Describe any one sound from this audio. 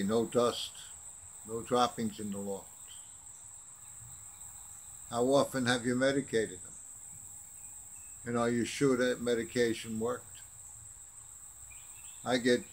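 An elderly man speaks calmly close to the microphone, with pauses.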